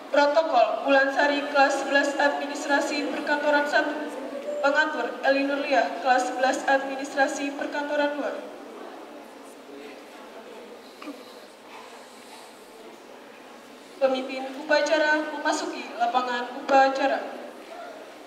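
Young voices sing together nearby.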